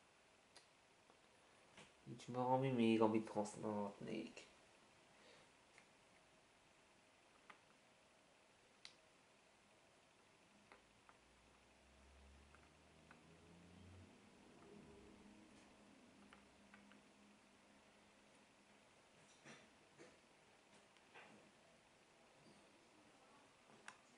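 Jigsaw puzzle pieces click softly against a table.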